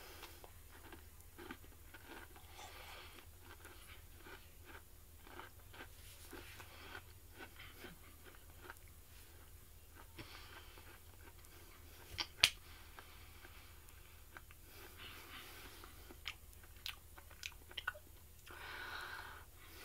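A young woman chews food with soft, wet smacking sounds close by.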